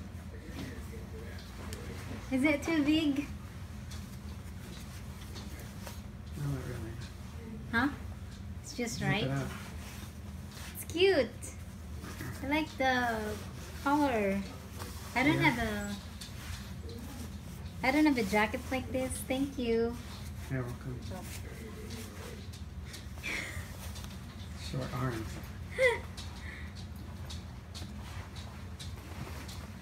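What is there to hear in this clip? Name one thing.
Fabric rustles as a jacket is put on and taken off.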